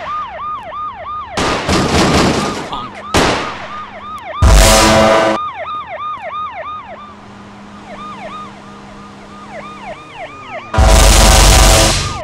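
A police siren wails steadily nearby.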